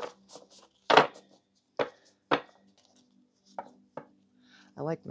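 Cards riffle and tap together as they are shuffled.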